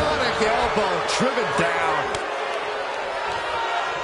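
A body thuds onto the wrestling ring mat.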